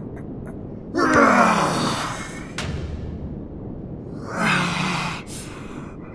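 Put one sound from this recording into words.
A young man groans loudly in dismay.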